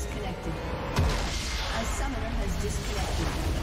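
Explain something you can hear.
A large explosion booms and crashes.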